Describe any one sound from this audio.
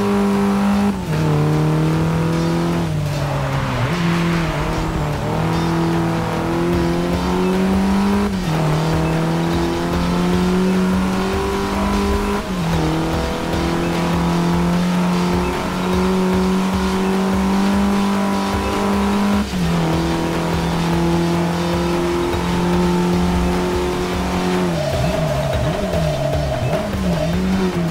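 A car engine roars steadily, dropping in pitch with each gear change.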